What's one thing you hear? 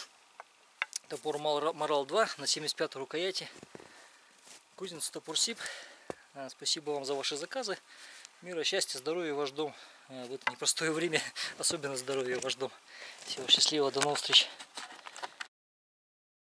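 A man talks with animation, close up, outdoors.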